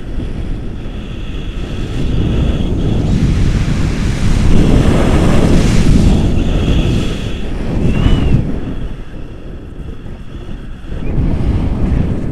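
Wind roars loudly against the microphone throughout.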